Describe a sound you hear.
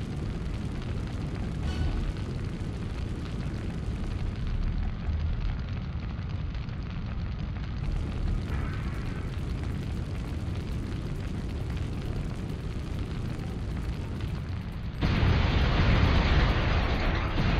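Flames roar nearby.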